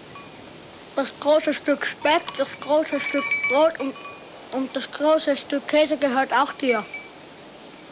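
A young boy speaks nearby with feeling.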